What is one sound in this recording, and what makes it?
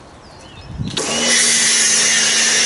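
A pressure washer hisses loudly as it sprays water.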